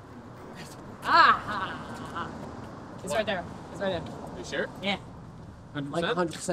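A young woman laughs loudly and talks excitedly nearby.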